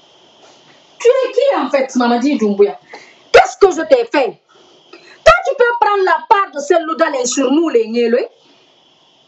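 A woman speaks with agitation close by.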